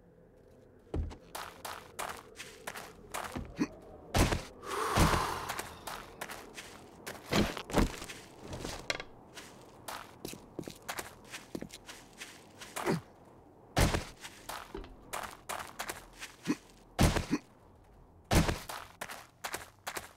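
Footsteps crunch over loose stones.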